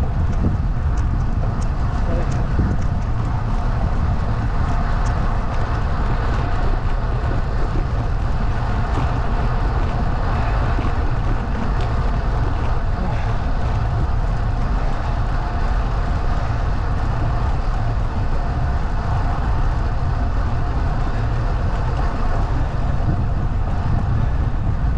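Wind buffets loudly and steadily outdoors.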